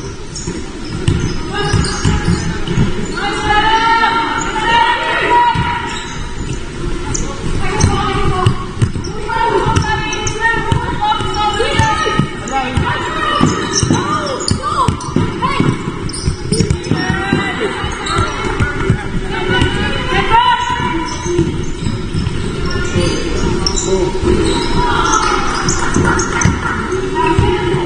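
Young women shout calls to each other across an echoing hall.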